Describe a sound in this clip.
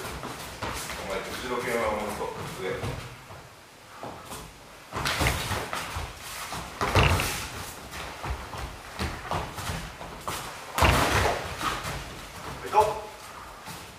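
A man shouts sharply during sparring.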